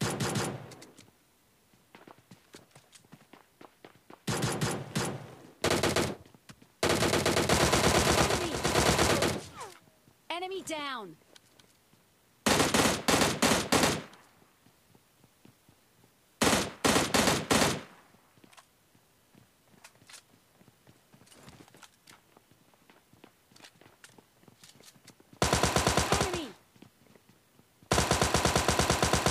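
Guns fire in rapid bursts, close by.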